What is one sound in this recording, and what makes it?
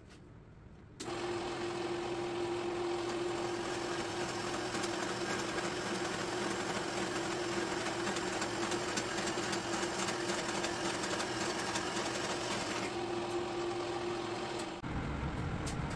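A band saw hums steadily as it cuts metal.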